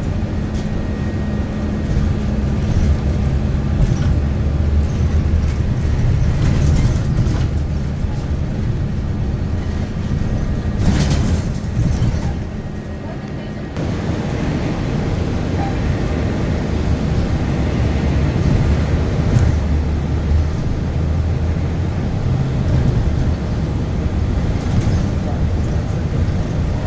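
A car engine rumbles steadily from inside a moving vehicle.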